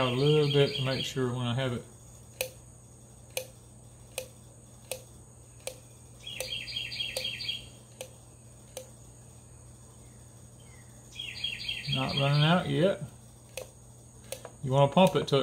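An oil can clicks as its pump is pressed repeatedly.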